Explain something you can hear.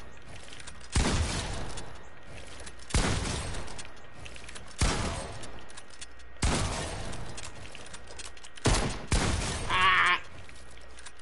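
Wooden walls thud into place in short, loud bursts.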